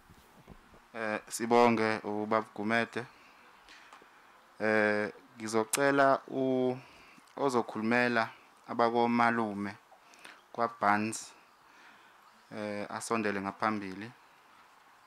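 A man speaks slowly and solemnly through a microphone and loudspeakers.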